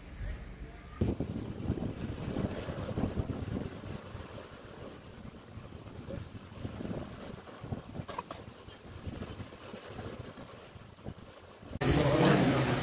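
Waves wash and lap against a rocky shore.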